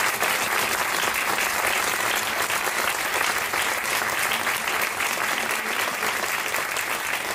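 An audience claps and applauds in a large echoing hall.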